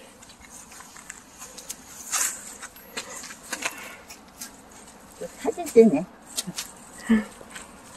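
Green onions rustle as they are pulled from the soil.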